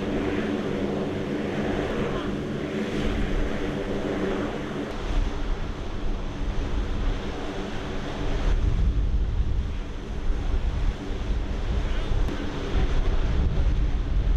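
A helicopter engine drones loudly and steadily.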